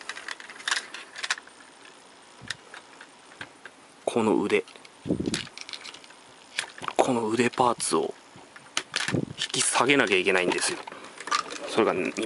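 Plastic parts of a toy click and snap as hands fold and move them.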